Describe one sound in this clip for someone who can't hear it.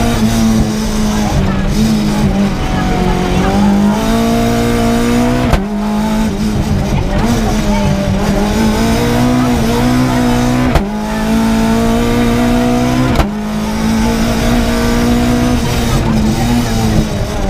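A race car engine roars loudly close by, revving high and dropping sharply at each gear change.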